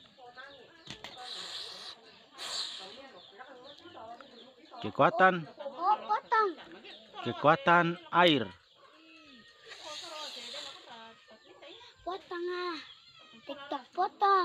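A young boy talks loudly and with animation close by.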